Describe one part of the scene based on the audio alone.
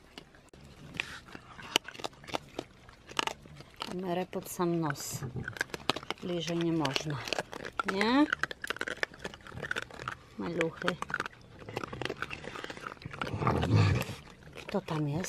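Raccoons crunch and chew food close by.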